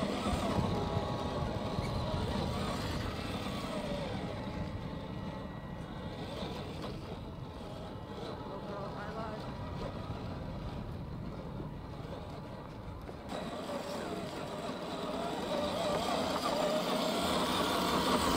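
Plastic tyres crunch on loose gravel and dirt.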